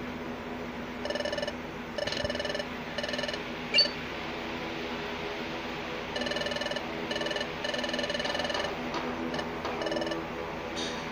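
Electronic text blips chirp rapidly in short bursts.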